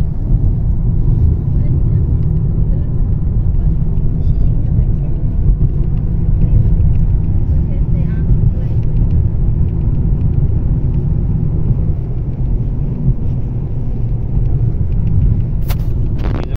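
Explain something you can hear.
A car engine and road noise rumble steadily from inside a moving car.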